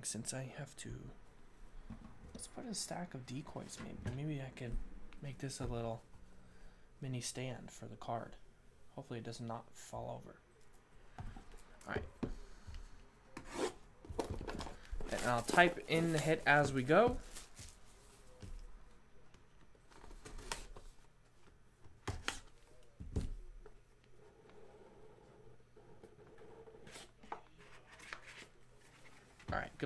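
Cardboard boxes tap and slide against each other as hands handle them.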